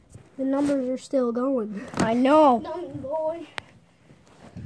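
A young boy speaks playfully close to the microphone.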